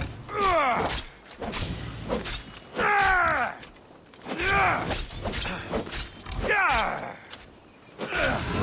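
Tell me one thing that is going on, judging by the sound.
A boar squeals and grunts loudly, over and over.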